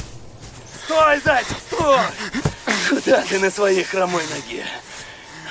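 An elderly man shouts out in strain, close by.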